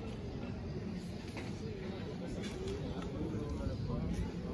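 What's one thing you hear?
Many people chatter outdoors, with voices rising and falling.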